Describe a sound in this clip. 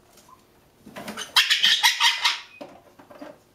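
A parrot squawks loudly in a harsh burst.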